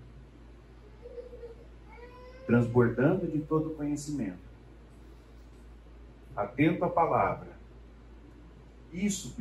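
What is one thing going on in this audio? A middle-aged man speaks with animation through a headset microphone in a slightly echoing room.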